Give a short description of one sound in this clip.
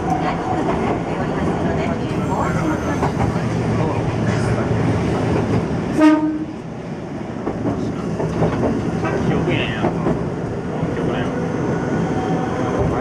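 A tram rumbles and rattles steadily along its rails.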